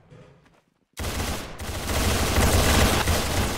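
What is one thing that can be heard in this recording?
A rapid burst of gunfire rings out.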